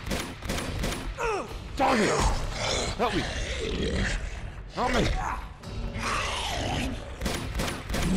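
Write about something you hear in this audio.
A man grunts while struggling.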